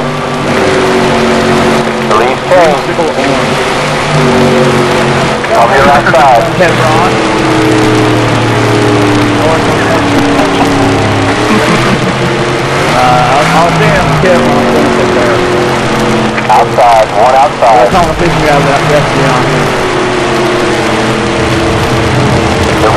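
Race car engines roar at high speed, rising and falling in pitch.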